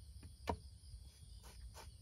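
A spoon scrapes across bread.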